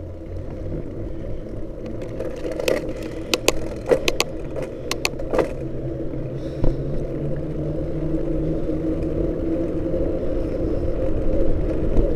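Tyres roll over rough tarmac.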